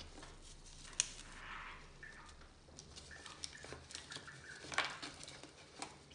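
A plastic pot crackles as fingers squeeze it.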